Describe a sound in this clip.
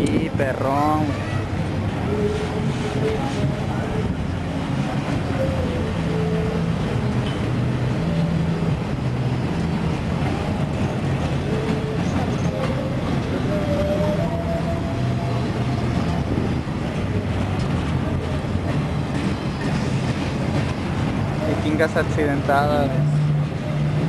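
Steel wheels screech and squeal against the rails.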